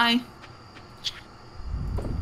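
A short soft blip sounds as a game menu opens.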